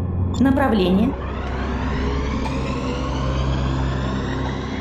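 A spaceship's boost engines power up with a rising whoosh.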